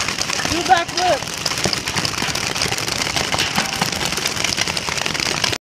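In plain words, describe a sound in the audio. Paintball guns pop in rapid bursts outdoors.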